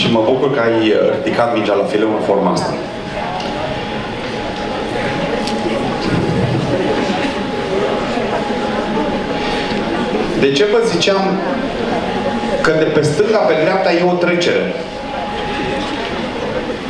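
A large audience murmurs and chatters quietly.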